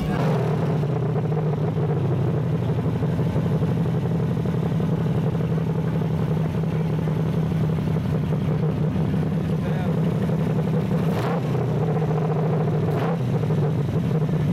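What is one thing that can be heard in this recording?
A V8 engine in a classic muscle car rumbles.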